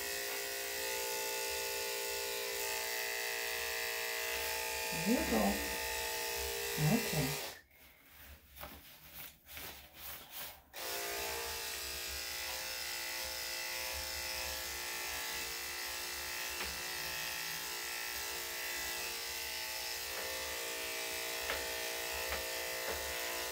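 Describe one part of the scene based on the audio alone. Electric clippers buzz steadily close by, with a brief pause partway through.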